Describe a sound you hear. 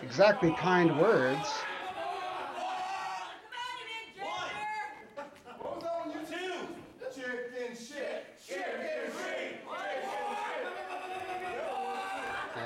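A man announces loudly and with animation in an echoing hall.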